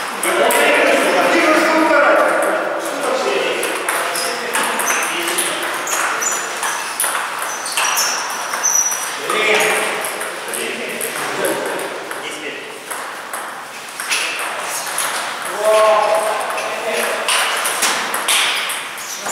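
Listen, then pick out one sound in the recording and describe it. A table tennis ball clicks off paddles and bounces on the table in a rally.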